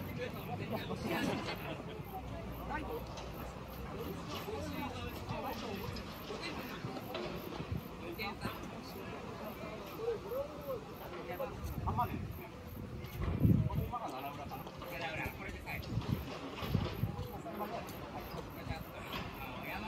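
Young men talk and call out to each other outdoors, nearby.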